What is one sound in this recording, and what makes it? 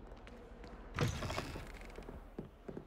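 Heavy wooden doors swing open with a loud thud.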